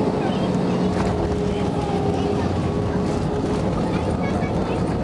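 Jet engines surge louder in a deep rumble as the plane slows on the runway.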